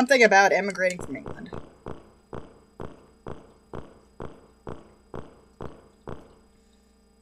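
Footsteps tap on a hard floor at a steady pace.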